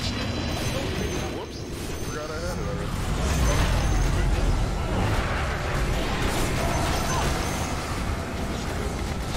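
Fantasy battle sound effects crackle and clash with magic blasts.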